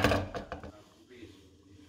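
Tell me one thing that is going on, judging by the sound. Plastic parts click and clatter against each other.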